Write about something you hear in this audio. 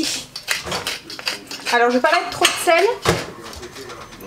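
A spoon clinks against a pot while stirring.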